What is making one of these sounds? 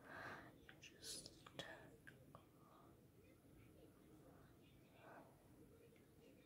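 A young girl whispers softly close to the microphone.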